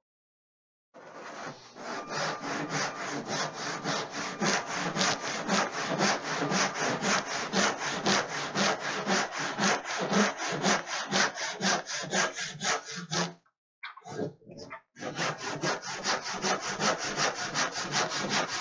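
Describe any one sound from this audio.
A hand saw cuts through wood with quick, rhythmic strokes.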